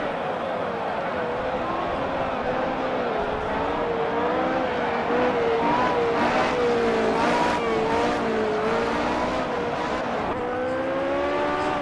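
A racing car engine roars loudly, its pitch rising and falling as it speeds up and slows down.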